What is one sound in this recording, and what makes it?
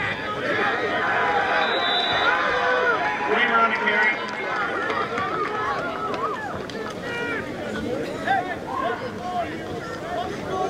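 Many voices of young men chatter and call out nearby.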